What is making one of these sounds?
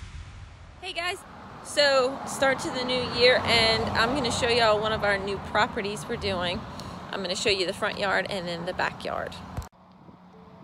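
A young woman talks calmly and cheerfully, close to the microphone.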